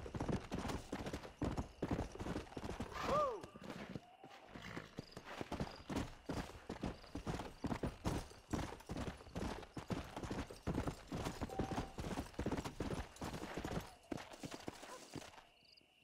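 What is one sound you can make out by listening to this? Horse hooves clop steadily on dirt and gravel at a gallop.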